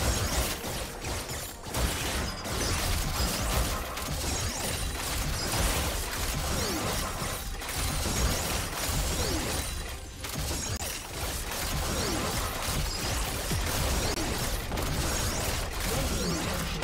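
Magical blasts and weapon clashes crackle and thud in a busy fight.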